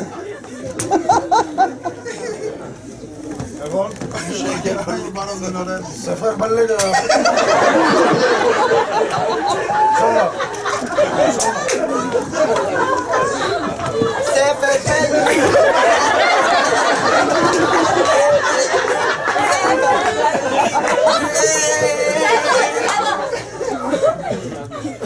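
An audience laughs.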